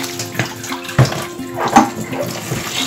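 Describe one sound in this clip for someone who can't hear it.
A metal bowl clanks against a sink.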